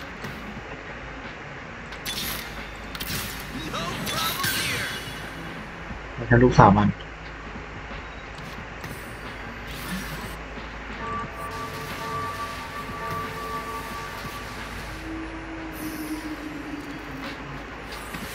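Game sound effects of magic spells and hits ring out in bursts.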